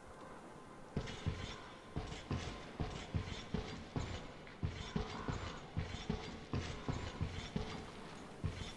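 Heavy footsteps thud steadily on a hard floor.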